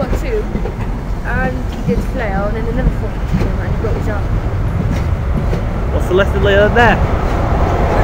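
Train wheels squeal sharply against the rails.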